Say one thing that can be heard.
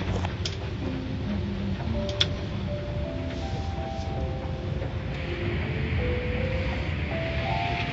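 Rotating brushes scrub and slap against a car.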